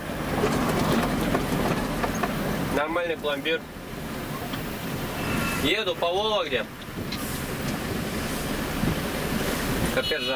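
Tyres roar on a paved road.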